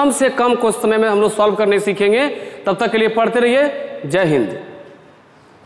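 A man speaks with animation close to a clip-on microphone.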